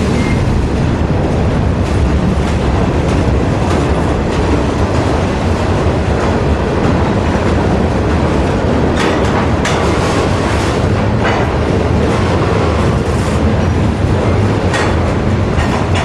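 A freight train rumbles loudly past on the tracks.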